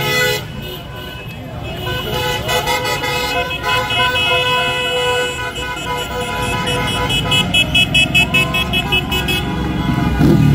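Car horns honk repeatedly.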